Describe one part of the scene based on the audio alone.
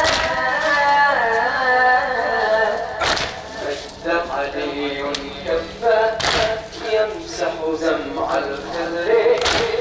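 A crowd of men beats their chests in a steady rhythm.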